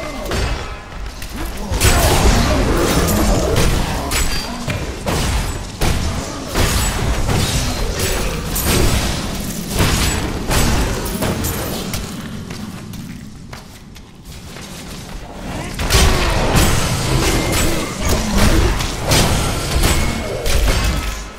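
Magic blasts crackle and boom during a fight.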